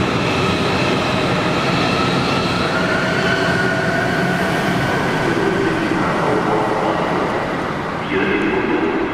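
A high-speed train glides past with a rising electric whine and rumble, echoing in a large hall.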